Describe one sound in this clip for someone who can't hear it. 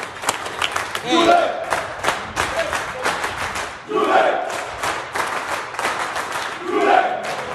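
Men cheer and shout loudly.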